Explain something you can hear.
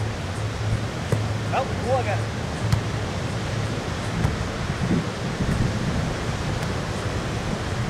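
Waves wash steadily onto the shore.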